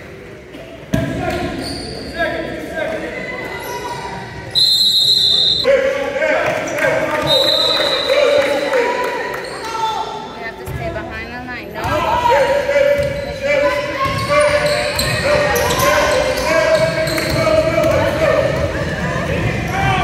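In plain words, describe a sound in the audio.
A crowd of children and adults chatters and calls out in the echoing hall.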